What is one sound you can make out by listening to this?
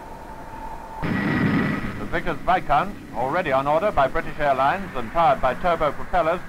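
Propeller engines roar as an airliner speeds down a runway.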